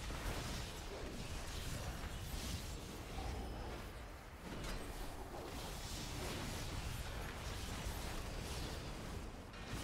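Spells crackle and whoosh in a fantasy battle.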